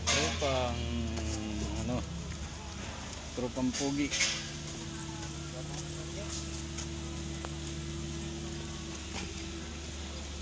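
Footsteps crunch on dry ground outdoors.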